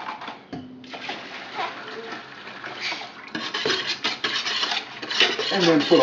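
Liquid pours from a bottle into a pot.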